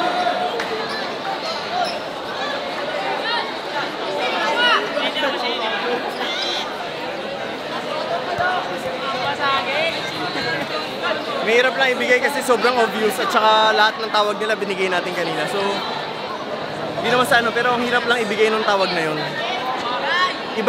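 A crowd chatters and shouts loudly all around.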